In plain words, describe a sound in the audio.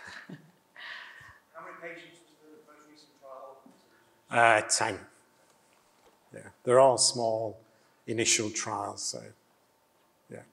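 A middle-aged man speaks calmly into a microphone in a large hall, pausing between phrases.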